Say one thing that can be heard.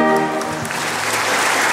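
A brass band plays a loud chord that cuts off.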